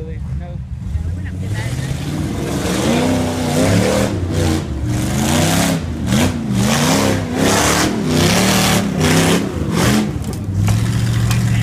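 An engine revs hard and roars in bursts.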